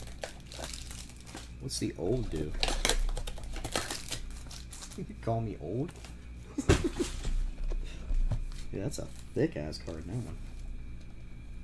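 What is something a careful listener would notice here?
A plastic wrapper crinkles and rustles as hands handle it.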